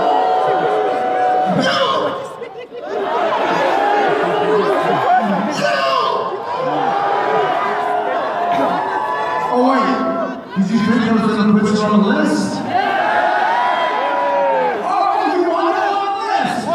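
A man speaks with animation through a microphone, loud over a loudspeaker in a large echoing hall.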